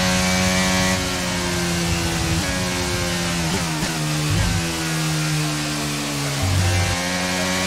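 A racing car engine drops in pitch with quick downshifts while slowing.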